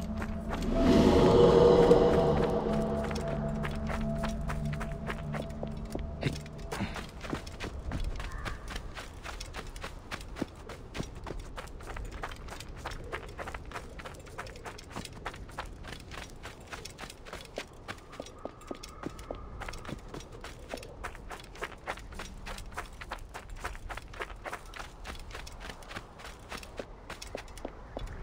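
Footsteps crunch quickly over loose gravel and dry ground.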